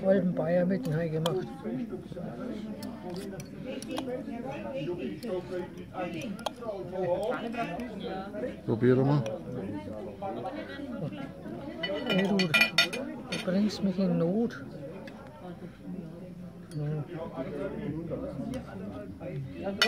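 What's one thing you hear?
A knife and fork scrape and clink on a plate.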